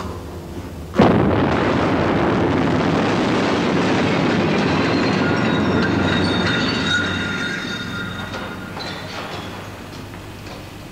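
Glass shatters and debris crashes loudly, then slowly settles.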